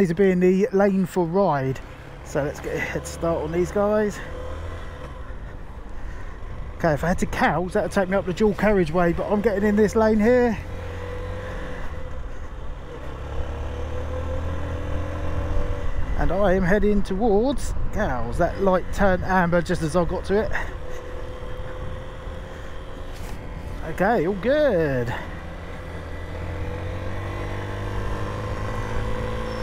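A motorcycle engine hums and rises in pitch as it speeds up.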